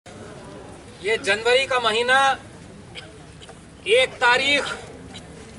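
An elderly man speaks loudly outdoors, in short bursts.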